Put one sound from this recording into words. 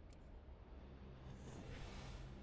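A rising whoosh sweeps in at the end.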